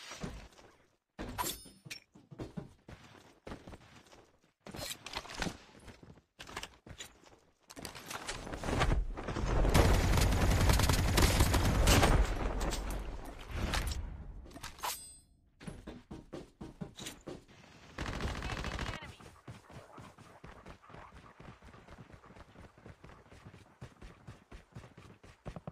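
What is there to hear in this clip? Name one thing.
Footsteps run quickly over ground.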